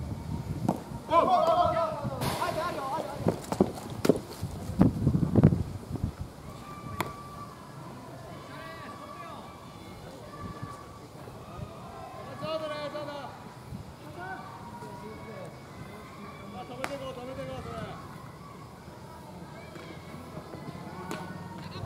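Players shout across an open field.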